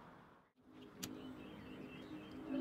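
A lighter clicks and sparks.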